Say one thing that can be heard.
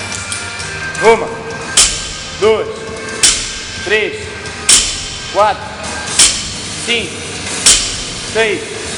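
A man grunts with effort as he lifts.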